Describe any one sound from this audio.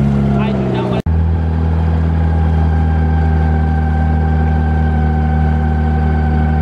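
A boat motor hums steadily.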